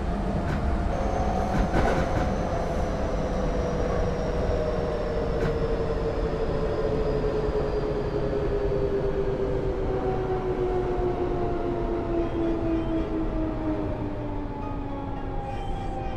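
An electric train motor whines, falling in pitch as the train slows.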